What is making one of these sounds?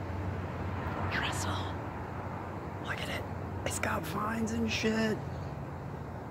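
A young man talks calmly close by, outdoors.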